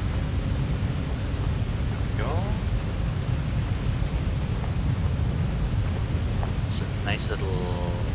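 A young woman speaks into a close microphone.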